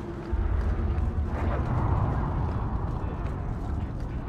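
A fire crackles nearby.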